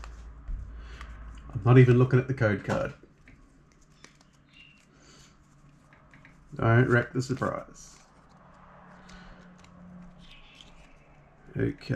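Playing cards shuffle and slide against each other.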